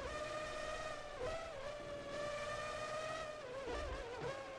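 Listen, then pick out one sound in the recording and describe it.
A racing car engine whines steadily at high speed.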